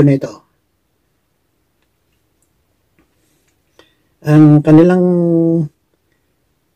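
An elderly man speaks calmly and close up, heard through a microphone.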